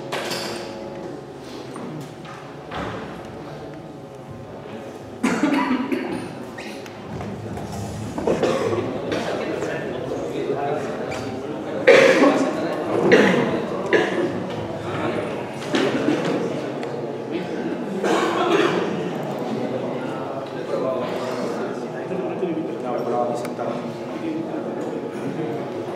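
A man speaks calmly through a microphone in an echoing hall.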